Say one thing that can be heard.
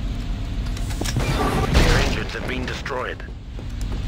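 Explosions boom and rumble.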